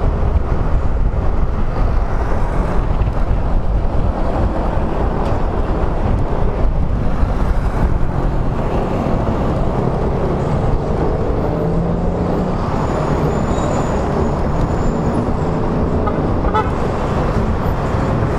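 Wind roars loudly across a microphone on a moving motorcycle.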